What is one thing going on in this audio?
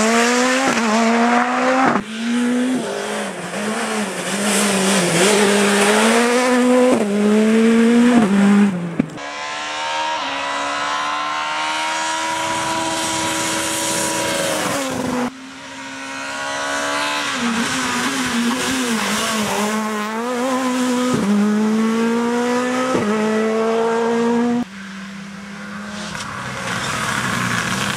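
A rally car engine roars and revs hard, climbing and dropping in pitch with each gear change.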